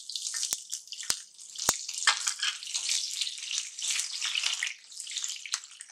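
A spatula scrapes and stirs in a pan.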